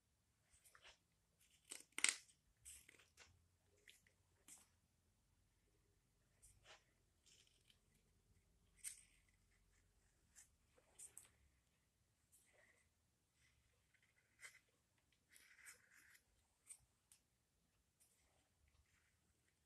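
A knife scrapes and shaves wood in short strokes, close by.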